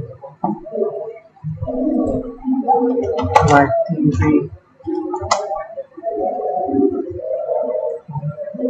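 A young man talks calmly and steadily into a close microphone.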